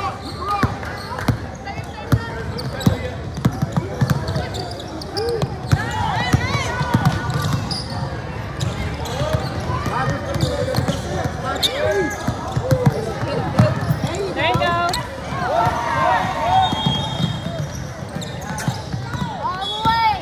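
A crowd of young players and spectators chatter and shout nearby.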